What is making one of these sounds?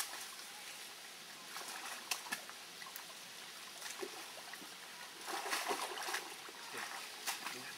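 Branches swish as a hand pulls them aside.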